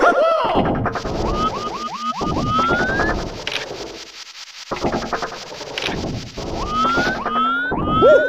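A game character slides and squeaks while climbing a pole.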